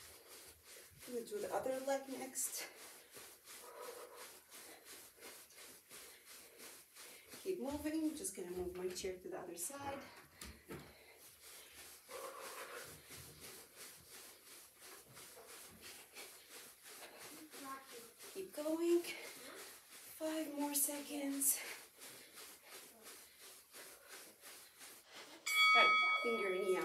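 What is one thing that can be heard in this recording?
Feet tap lightly and quickly on a carpeted floor.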